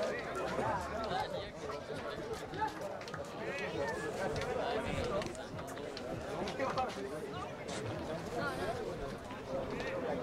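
Men shout and call out to each other outdoors on an open field.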